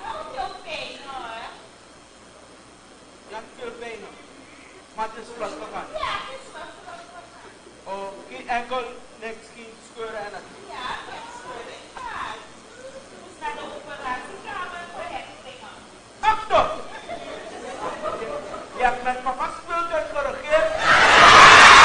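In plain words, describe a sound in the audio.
A woman speaks with animation on a stage.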